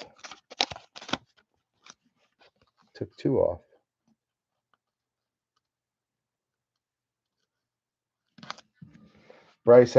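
Trading cards rustle and slide as hands sort through them.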